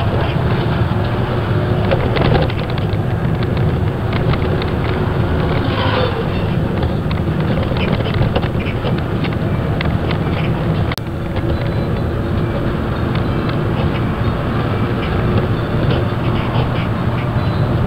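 Tyres hum on the road surface.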